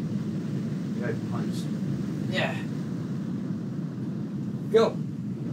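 A man speaks a few short words close to a microphone.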